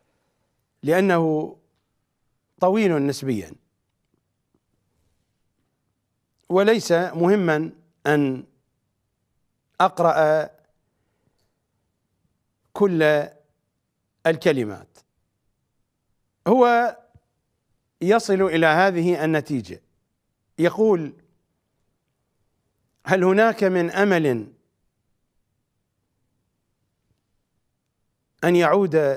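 A middle-aged man speaks with feeling into a close microphone, in short phrases with pauses between them.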